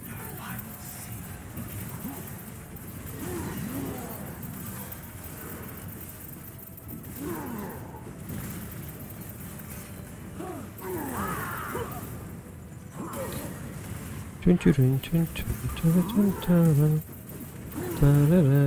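Magic blasts and sword hits crackle and boom in a busy fight.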